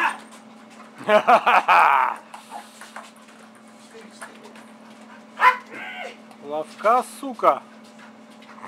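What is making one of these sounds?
A dog barks and yelps excitedly.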